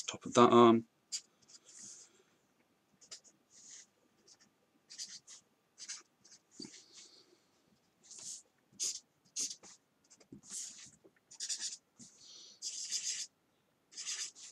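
A pen scratches across paper in short strokes.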